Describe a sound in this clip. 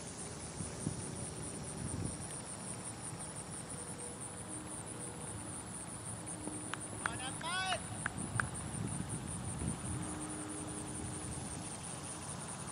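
Wind rumbles across the microphone outdoors in an open field.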